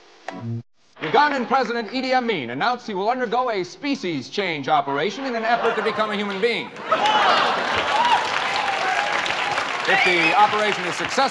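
A man reads out news calmly into a microphone.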